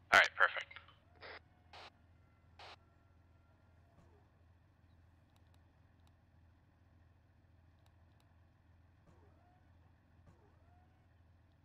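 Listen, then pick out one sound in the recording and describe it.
A tank engine idles with a low, steady rumble.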